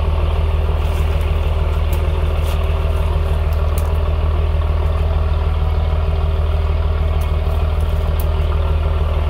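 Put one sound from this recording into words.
Metal knocks and clanks as men work on a deck.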